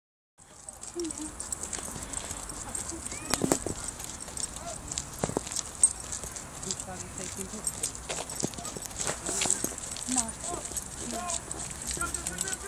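Footsteps tread on pavement.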